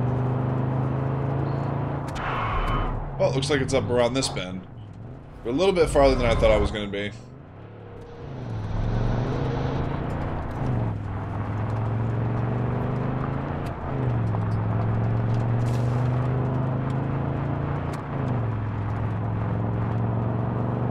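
A car engine hums and revs up as it gears through, rising in pitch and dropping at each gear change.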